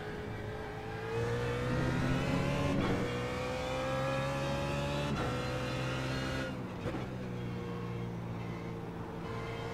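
A racing car engine revs high and climbs through the gears.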